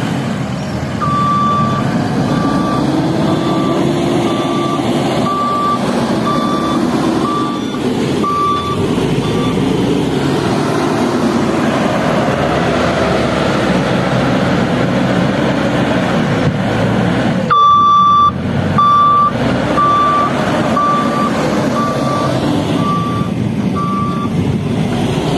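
A loader's reverse alarm beeps in a steady rhythm.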